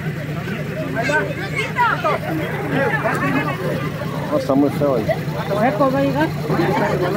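A crowd of people talks loudly close by.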